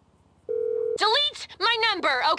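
A young woman speaks animatedly through a phone.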